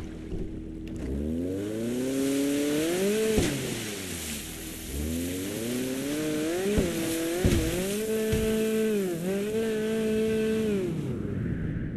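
A jet ski engine revs up and down.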